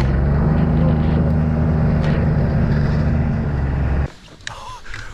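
A snowmobile engine drones steadily up close.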